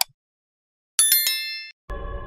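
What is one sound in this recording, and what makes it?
A small bell chimes brightly and fades.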